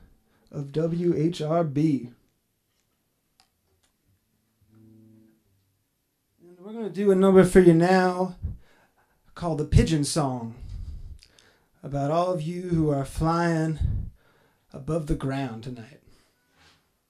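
A young man sings into a microphone in short phrases.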